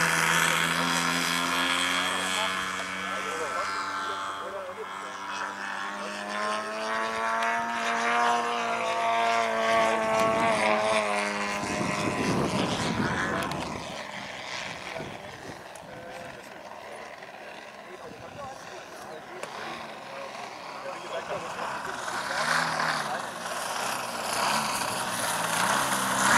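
A model airplane engine whines and drones overhead, rising and falling in pitch as the plane swoops.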